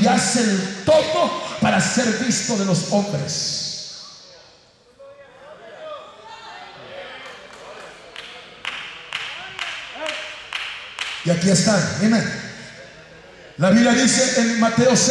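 A man sings loudly through a microphone and loudspeakers in a large echoing hall.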